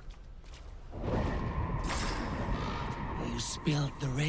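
A deep magical whoosh swells and rings.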